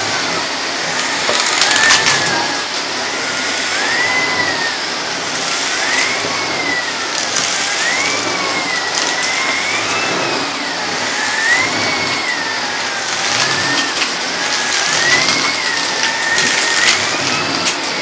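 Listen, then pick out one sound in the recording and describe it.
A vacuum nozzle rattles as it sucks up grit.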